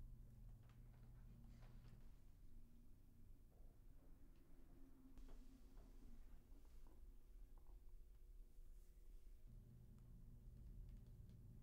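Fingers tap softly on a laptop keyboard.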